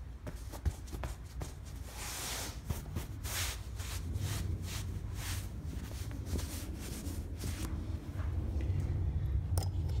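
A hand pats and rubs an inflated air mattress.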